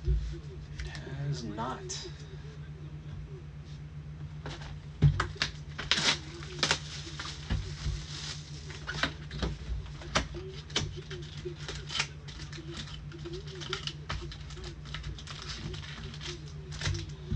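Plastic wrapping crinkles and rustles as hands tear open a box.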